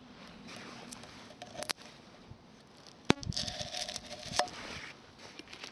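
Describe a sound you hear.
A metal blade scrapes against a tin can.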